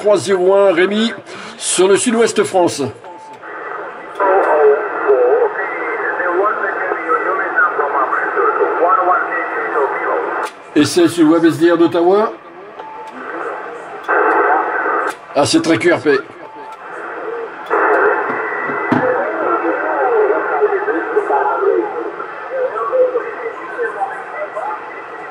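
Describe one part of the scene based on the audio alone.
A radio receiver hisses with crackling static and garbled transmissions.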